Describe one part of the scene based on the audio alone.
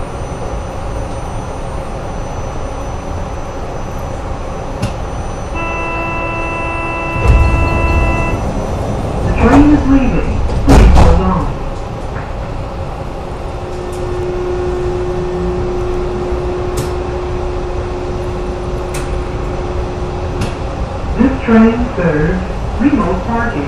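A train rumbles steadily along its track.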